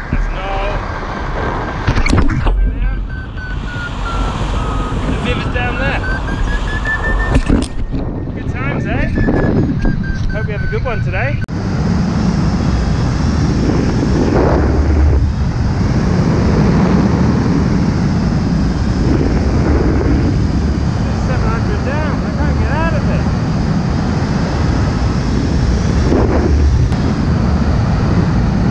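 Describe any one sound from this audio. Wind rushes loudly past a hang glider in flight, outdoors high in the air.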